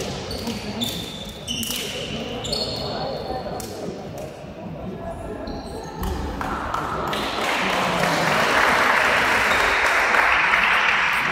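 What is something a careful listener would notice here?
Teenage girls chatter and call out to each other nearby.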